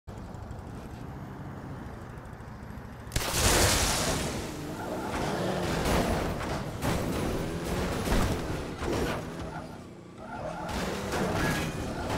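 A vehicle engine rumbles and revs steadily.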